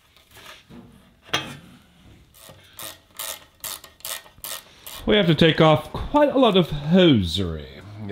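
A screwdriver scrapes against a metal hose clamp.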